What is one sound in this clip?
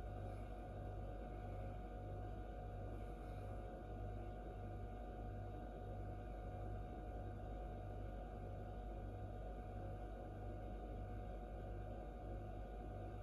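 An incubator fan hums steadily with a low, pulsing throb.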